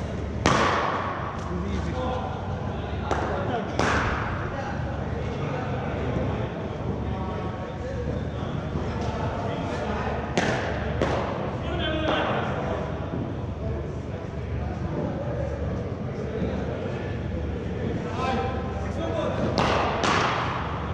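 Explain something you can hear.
Men talk in the distance in a large echoing hall.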